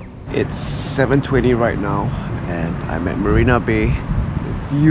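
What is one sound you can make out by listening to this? A young man talks close up.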